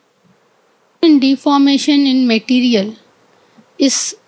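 A man speaks loudly in a drawn-out, chanting voice.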